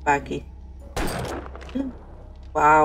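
A rifle fires a single shot.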